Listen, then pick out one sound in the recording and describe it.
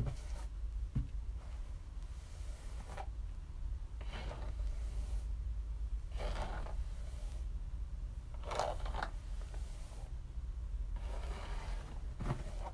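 A brush swishes through hair in repeated strokes.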